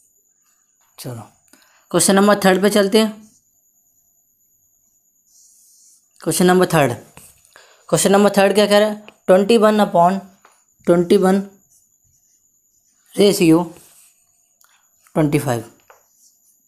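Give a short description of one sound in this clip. A young man explains calmly, close to a microphone.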